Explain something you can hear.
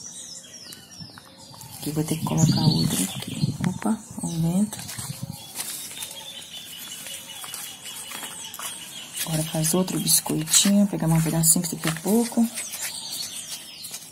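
A wooden stick scrapes and presses into soft wet clay.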